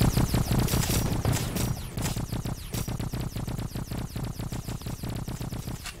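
Quick footsteps clatter on a ladder rung by rung.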